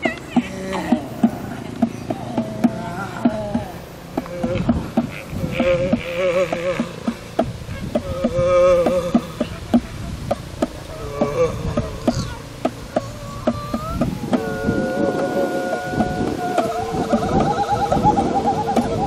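A woman sings in long, wavering notes.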